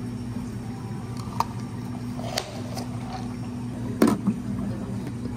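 A plastic lid snaps onto a cup.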